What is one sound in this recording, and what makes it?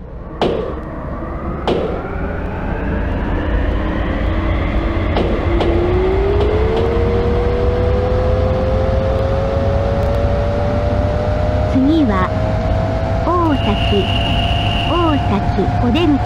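A train's electric motor whines, rising steadily in pitch as the train speeds up.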